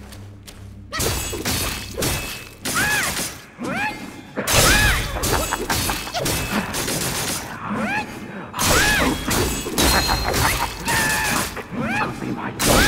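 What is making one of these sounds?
A blade slashes and strikes with sharp hits.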